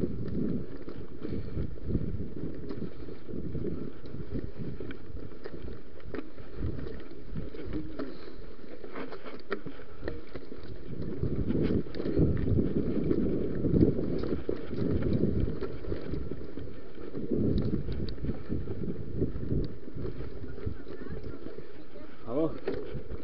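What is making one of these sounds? Bicycle tyres rattle and bump over a rough dirt trail.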